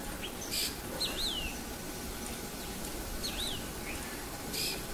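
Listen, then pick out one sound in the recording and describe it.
A small bird gives short, sharp whistling calls close by.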